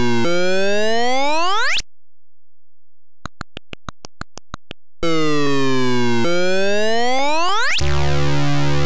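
Beeping electronic game sounds sweep up in pitch.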